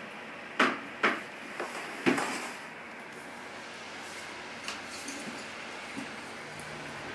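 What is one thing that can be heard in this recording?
A small animal's feet thump on a plastic carrier.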